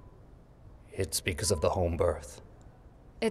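A man speaks quietly and gravely.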